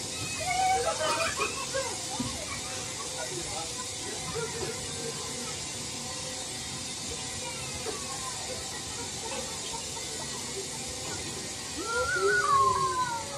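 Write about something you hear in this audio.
Riders shriek on a spinning fairground ride.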